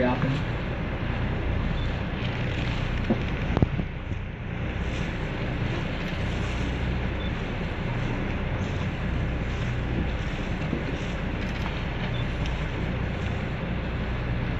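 Wind gusts and rumbles outdoors across open water.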